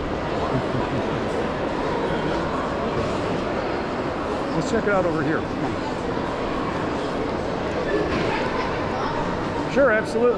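Distant voices murmur in a large echoing hall.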